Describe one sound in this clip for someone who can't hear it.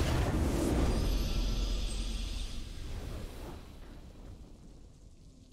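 A game victory fanfare swells and fades.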